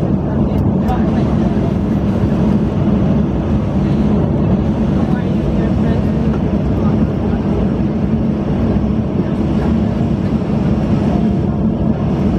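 A jet engine drones steadily, heard from inside the cabin.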